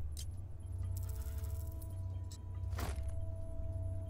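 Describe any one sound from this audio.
A sparkling whoosh sounds as a crate bursts open.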